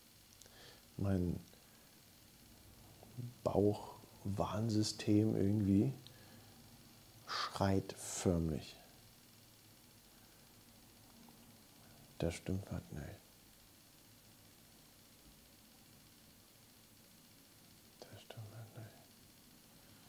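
A middle-aged man speaks calmly in short bursts, close to a microphone.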